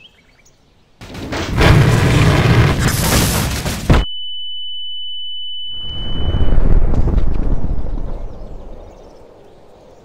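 A huge explosion booms and rumbles, then slowly fades.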